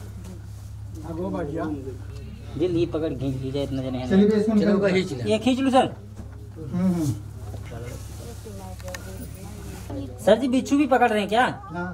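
Men talk loudly and excitedly outdoors.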